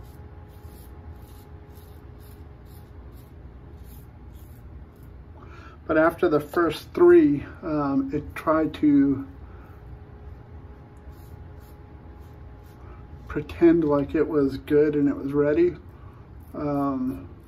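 A razor scrapes across stubble close by.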